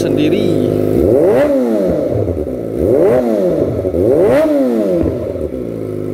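A motorcycle engine revs up sharply three times, then falls back.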